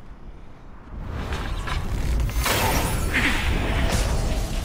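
A burst of smoke hisses and whooshes.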